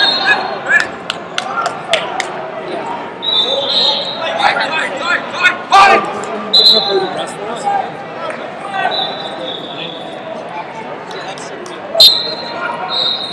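A man shouts instructions loudly from nearby.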